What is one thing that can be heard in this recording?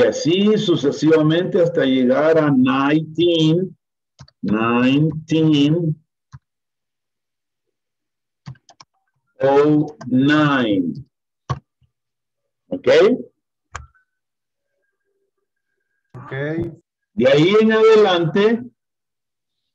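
A man speaks slowly and clearly over an online call, pausing between phrases.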